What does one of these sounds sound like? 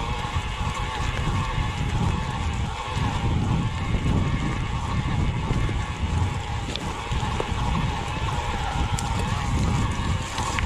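Bicycle tyres roll and crunch over a dry, rocky dirt trail.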